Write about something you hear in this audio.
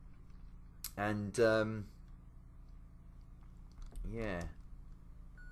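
A man speaks briefly and casually into a nearby microphone.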